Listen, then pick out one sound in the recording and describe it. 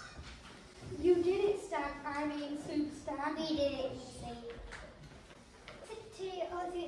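A young girl speaks through a microphone.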